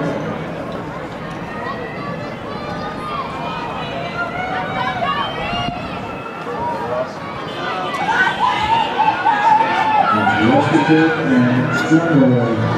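A crowd of spectators cheers and shouts outdoors, growing louder toward the end.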